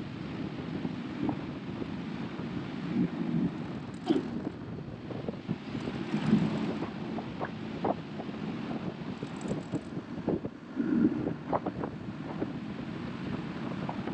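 A heavy machine's diesel engine rumbles steadily while driving along a road.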